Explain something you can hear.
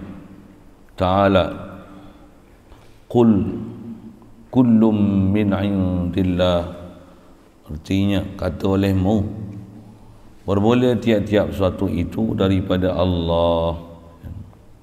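An elderly man speaks slowly and calmly into a microphone, in a reverberant room.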